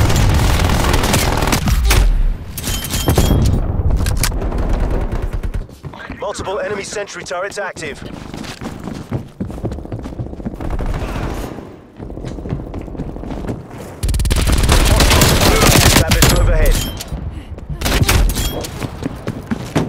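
Rapid gunshots crack and echo.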